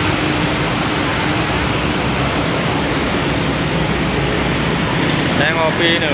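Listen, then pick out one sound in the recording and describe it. A truck engine rumbles as it drives by.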